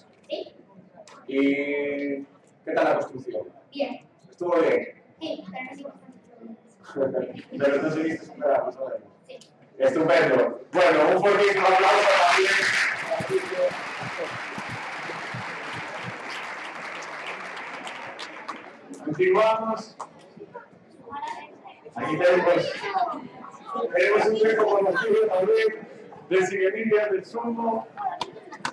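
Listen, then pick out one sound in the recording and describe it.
A man speaks with animation into a microphone over a loudspeaker.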